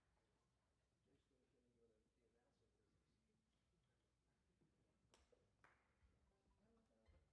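An orchestra plays softly in a large echoing hall.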